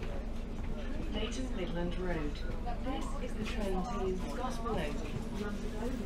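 A woman talks on a phone nearby.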